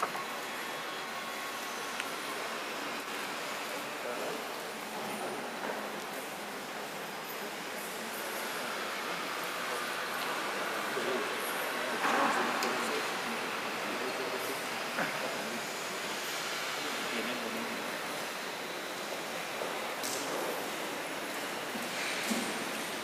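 Voices murmur softly in a large echoing hall.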